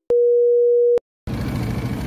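A steady test tone beeps, then cuts off.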